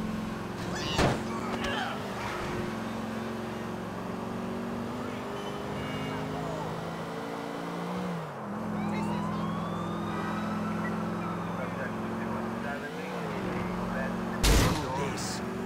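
A car crashes into something with a loud thud.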